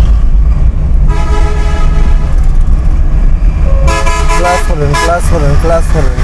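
Vehicle horns honk loudly in traffic.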